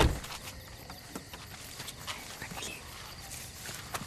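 A young man speaks anxiously up close.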